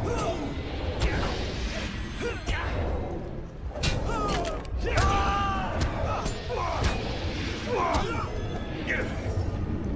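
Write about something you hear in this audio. Sword blows clash and strike in quick combat.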